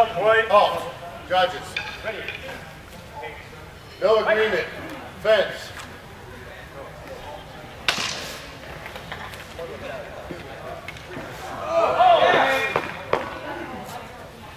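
A man's voice calls out in a large echoing hall.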